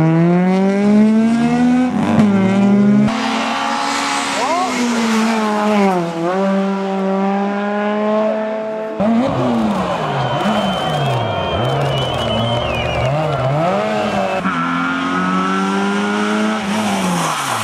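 Car tyres screech on tarmac.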